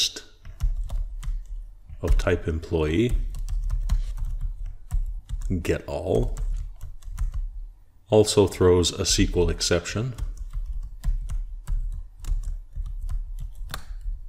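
Keys on a keyboard click in quick bursts of typing.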